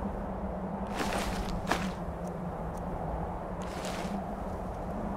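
Short whooshing clicks sound as items are picked from a menu.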